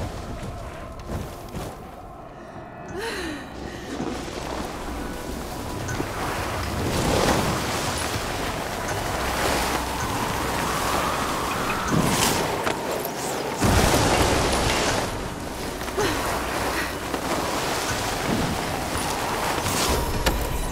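A snowboard carves and hisses through deep powder snow.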